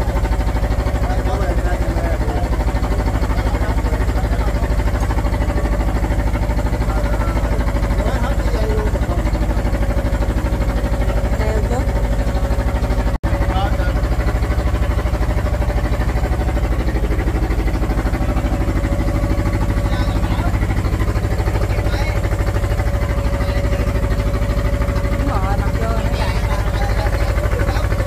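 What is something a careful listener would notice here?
Men talk faintly over the engine noise.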